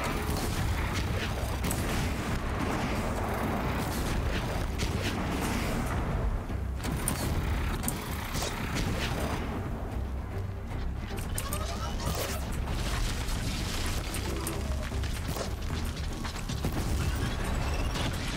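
A bow twangs as arrows are shot.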